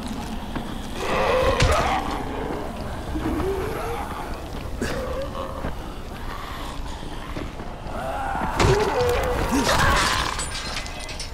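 Creatures growl and snarl close by.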